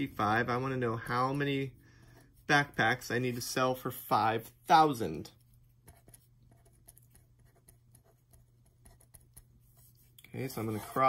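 A marker squeaks faintly as it writes on paper.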